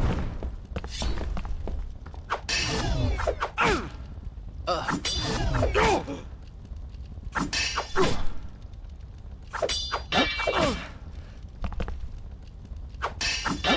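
Swords clash with metallic rings.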